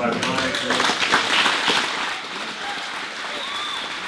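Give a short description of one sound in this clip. A middle-aged man speaks into a microphone in a large echoing hall.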